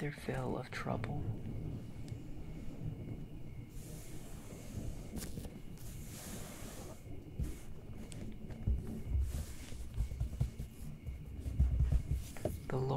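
Hands slowly rub and brush across paper pages.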